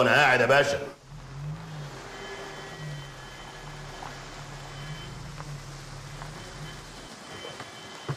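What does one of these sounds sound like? A car engine hums as a car rolls slowly up.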